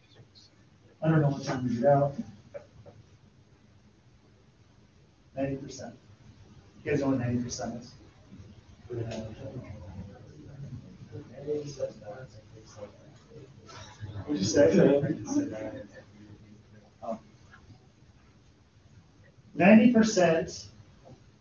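A man speaks loudly to a group, pausing often.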